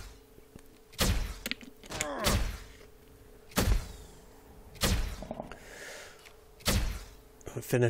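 A weapon fires sharp shots every second or so.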